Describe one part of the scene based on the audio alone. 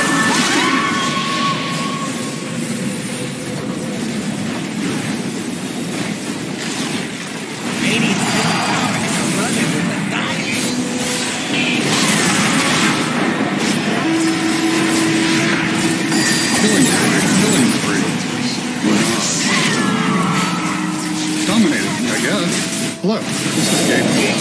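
Spell effects whoosh, crackle and zap.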